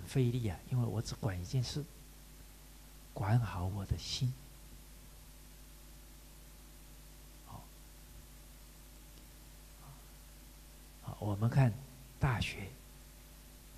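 A man speaks calmly into a microphone in short bursts, with pauses between.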